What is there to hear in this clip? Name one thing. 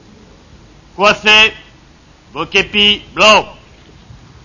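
A man shouts commands loudly outdoors.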